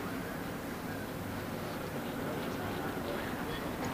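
A race car roars past at speed.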